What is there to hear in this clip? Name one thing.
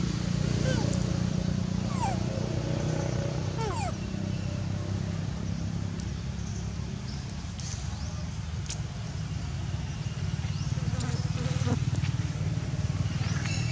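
A monkey chews food softly.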